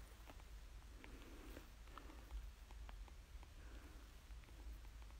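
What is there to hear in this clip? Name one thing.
A young man murmurs quietly close by.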